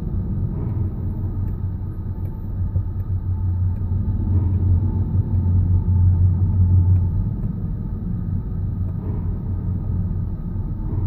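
A car engine hums low and steady from inside the car as it drives slowly.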